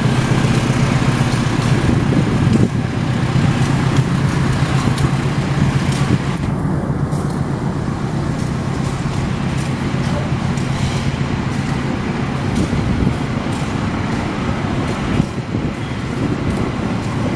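Steel wheels clank and squeal on the rails.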